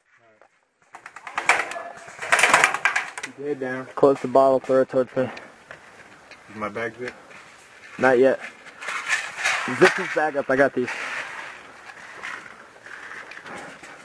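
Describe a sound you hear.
A young man talks urgently nearby, outdoors.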